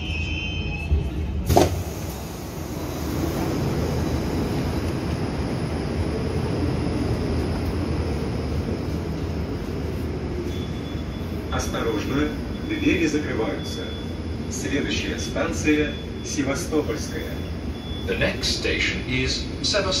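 A subway train rumbles steadily, filling the space with a low roar.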